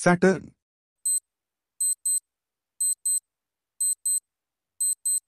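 A countdown timer beeps in pairs, about once a second.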